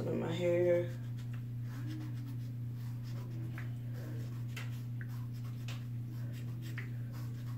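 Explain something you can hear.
Hands rustle through hair.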